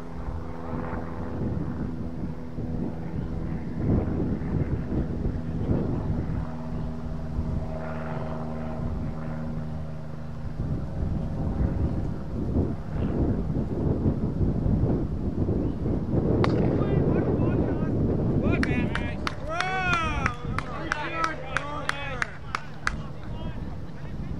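Wind blows across an open field.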